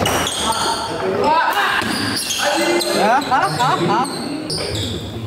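Shoes squeak sharply on a wooden court.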